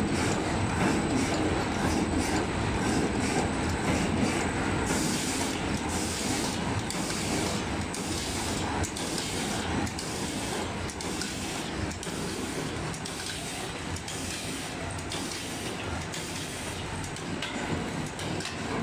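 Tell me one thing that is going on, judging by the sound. A packing machine clicks and clatters in a fast, even rhythm.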